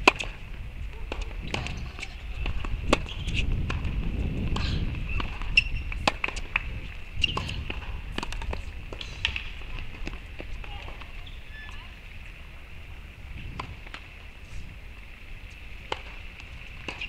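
A tennis ball is struck back and forth with rackets, with sharp pops.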